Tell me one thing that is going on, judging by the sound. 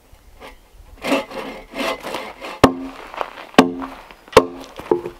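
A hatchet chops into a log with sharp, ringing blows.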